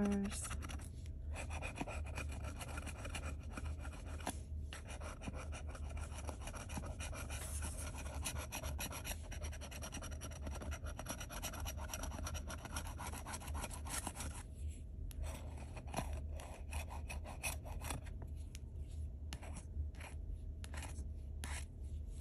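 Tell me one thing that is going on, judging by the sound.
A metal tool scratches rapidly across a scratch card.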